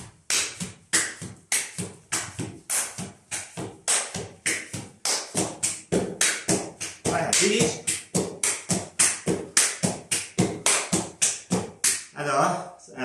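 Shoes stamp rapidly in a flamenco dance on a hard floor.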